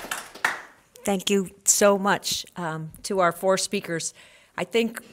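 A woman speaks calmly into a handheld microphone in a room with some echo.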